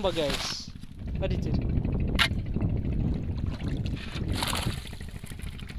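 A spear splashes into shallow water.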